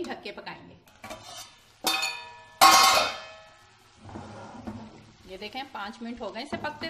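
Food sizzles in a pan.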